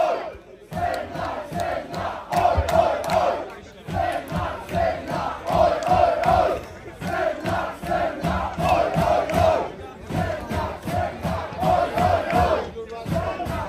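A man shouts into a microphone over the music.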